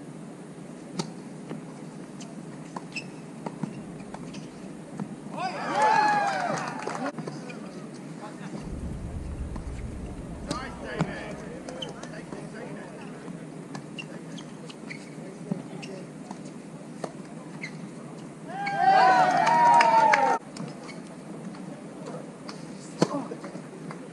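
Tennis rackets hit a ball with sharp pops.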